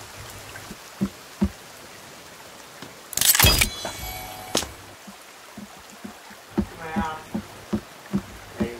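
Footsteps thud on hollow wooden planks.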